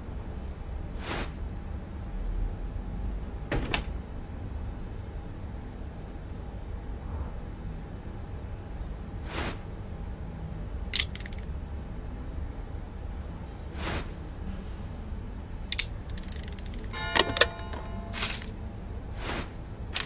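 Short soft swishes sound now and then.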